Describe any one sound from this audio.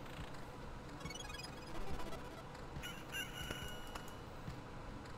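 Short electronic chimes and blips play from a video game.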